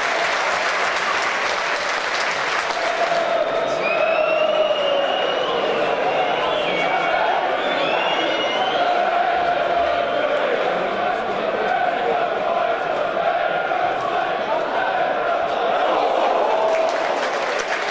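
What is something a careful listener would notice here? A crowd of fans chants and sings loudly in an open stadium.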